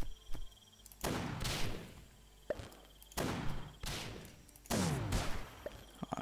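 A fireball bursts with a loud whoosh.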